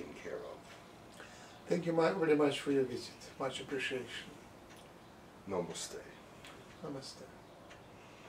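A man speaks calmly and softly nearby.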